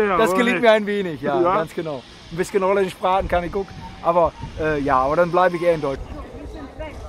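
A middle-aged man speaks cheerfully and close up, outdoors.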